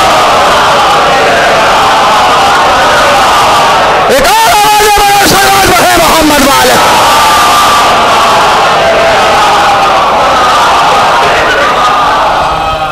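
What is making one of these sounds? A man speaks loudly and with feeling through a microphone and loudspeaker, echoing in a room.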